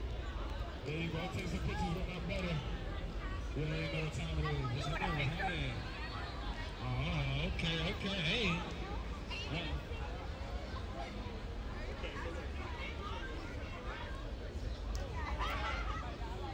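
A crowd of men and women chatter outdoors on a busy street.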